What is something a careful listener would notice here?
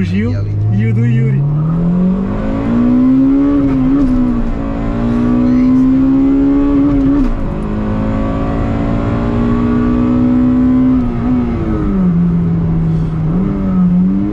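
A car engine revs hard, rising and falling as the gears change.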